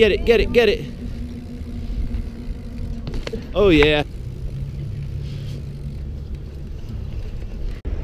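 Bicycle tyres roll and hum over a concrete path.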